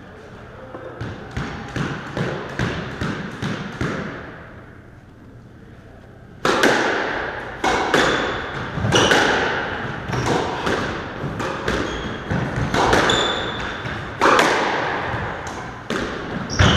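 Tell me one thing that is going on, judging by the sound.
A squash ball smacks against racquets and walls with a sharp echo in a large hard-walled court.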